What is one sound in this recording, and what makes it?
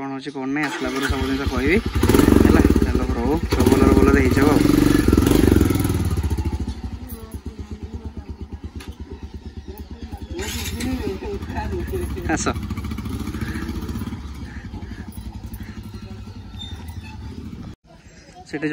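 A motorcycle engine starts and revs loudly, then idles with a steady putter.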